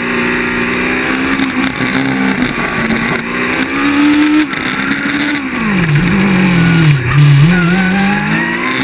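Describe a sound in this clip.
A racing car engine revs loudly up and down close by.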